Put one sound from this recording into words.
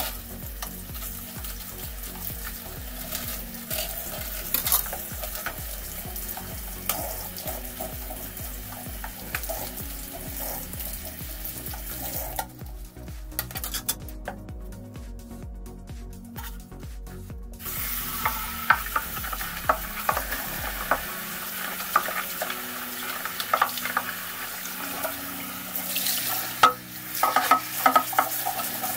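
Water runs from a tap into a basin.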